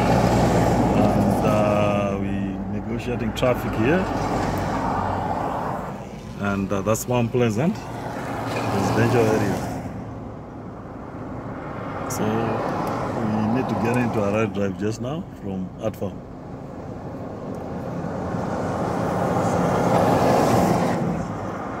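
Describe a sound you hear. A heavy truck rumbles past close by.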